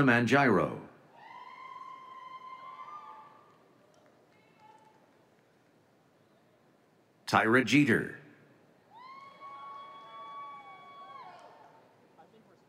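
People in a crowd whoop and cheer loudly.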